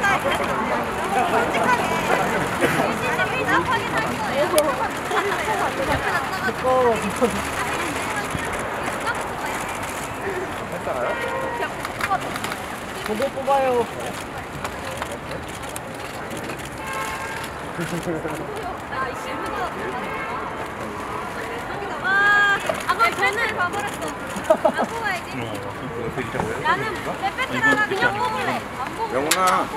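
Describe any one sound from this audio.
Young women chatter and laugh close by.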